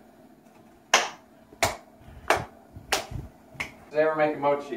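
A young man claps his hands sharply several times.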